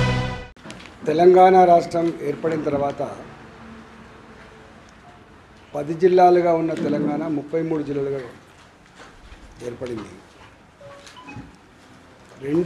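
A middle-aged man speaks calmly and with pauses into a nearby microphone.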